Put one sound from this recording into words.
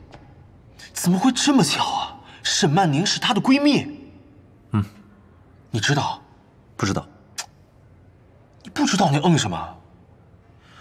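A young man speaks with surprise, close by.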